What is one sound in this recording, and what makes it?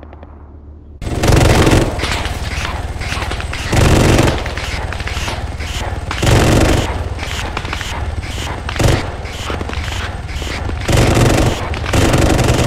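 A helicopter's rotor thumps loudly and steadily.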